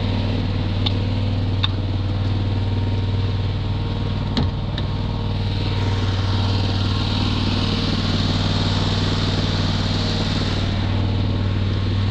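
A tractor engine idles with a steady low rumble nearby.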